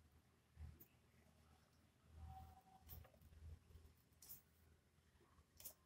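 A pen scratches faintly across paper.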